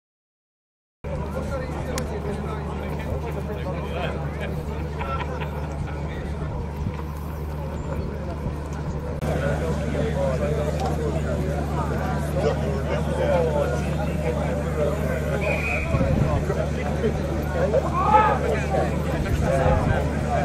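A crowd of men and women chat outdoors.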